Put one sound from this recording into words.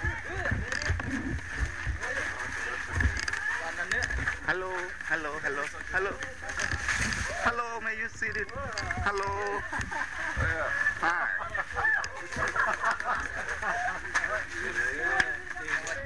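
Adult men talk casually nearby.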